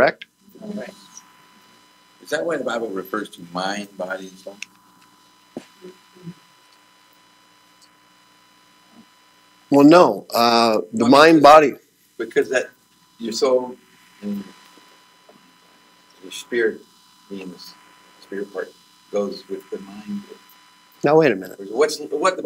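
A man speaks with animation, in pauses, to an audience.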